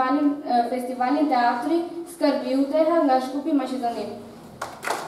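A young woman speaks with animation through a microphone and loudspeakers in a large hall.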